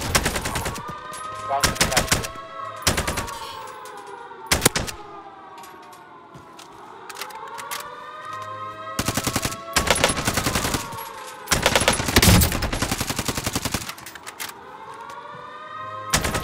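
Rapid rifle gunfire rings out in short bursts.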